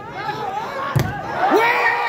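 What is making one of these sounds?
A volleyball is struck hard with a sharp smack.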